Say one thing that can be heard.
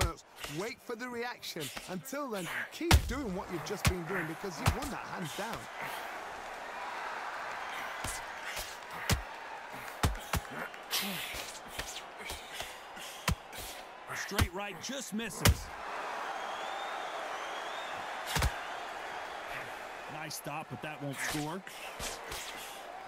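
Punches thud against bodies and gloves in quick bursts.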